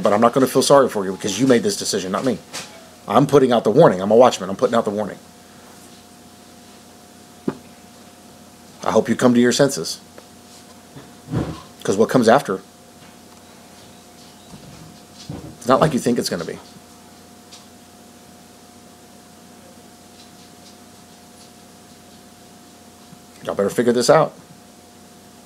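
A man speaks calmly into a microphone, in short bursts with long pauses.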